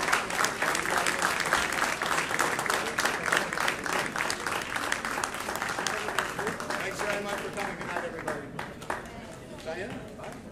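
An audience applauds in a large hall, then the clapping fades.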